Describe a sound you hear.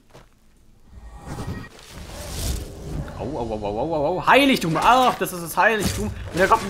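A magic lightning spell crackles and hisses.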